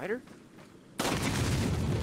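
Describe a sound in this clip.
A gun fires a loud shot.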